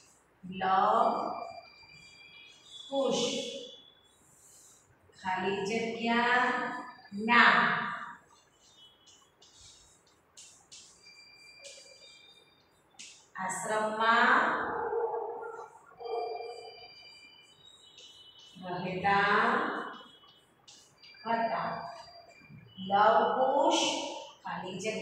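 A young woman speaks clearly and calmly, as if teaching, close by.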